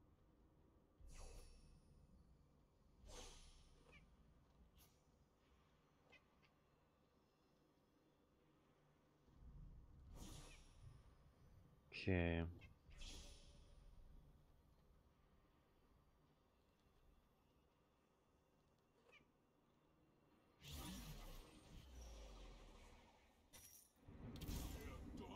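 Video game spell and hit effects whoosh and burst in short bursts.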